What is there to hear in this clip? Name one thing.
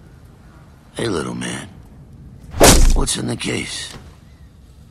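A man speaks in a gruff voice up close.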